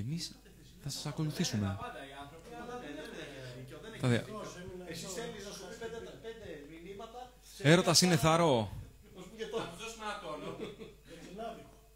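A young man speaks animatedly into a microphone.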